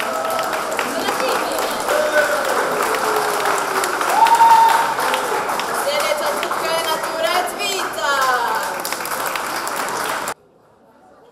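A teenage girl speaks with animation through a microphone in an echoing hall.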